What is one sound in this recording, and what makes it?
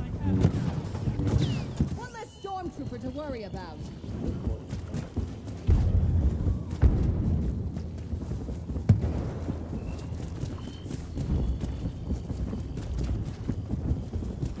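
Footsteps crunch quickly over a forest floor.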